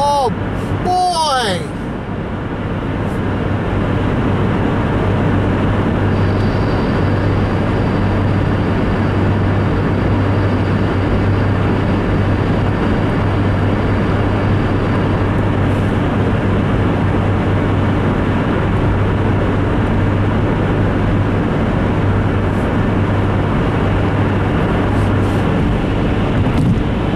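Tyres roar steadily on wet pavement.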